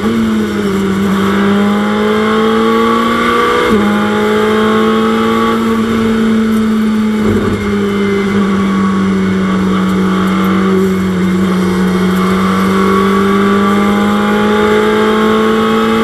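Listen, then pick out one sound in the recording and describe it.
A racing car engine roars loudly at high revs, rising and dropping in pitch as the gears change.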